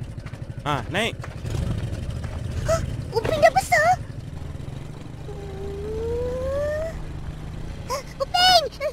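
A motorbike engine idles with a low rumble.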